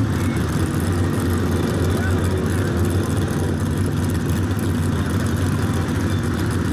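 A car engine idles with a loud, rumbling exhaust close by.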